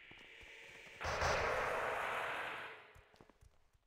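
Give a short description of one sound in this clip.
A shimmering magical whoosh swells and fades.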